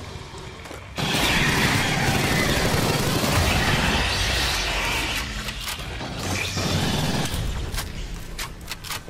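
Gunfire rattles fast.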